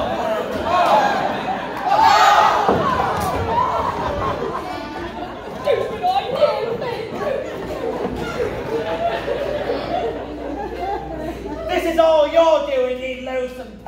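A cast of young voices sings together on a stage, heard from a distance in an echoing hall.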